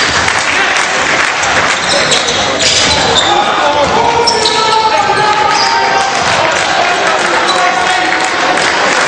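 A crowd of spectators murmurs and cheers in a large echoing hall.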